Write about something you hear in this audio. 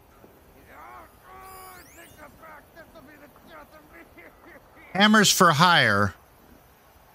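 An elderly man talks with animation close to a microphone.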